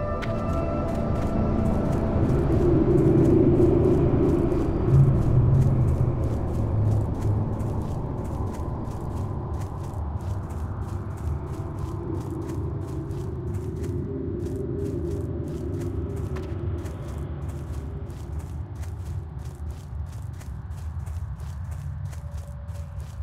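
Quick footsteps patter steadily on hard ground.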